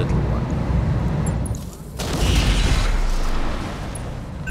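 Deep explosions boom and rumble.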